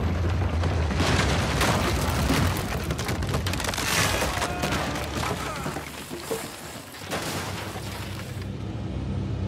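Wooden planks crack and collapse with a loud crash.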